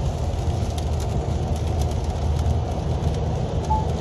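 Rain patters on the windscreen.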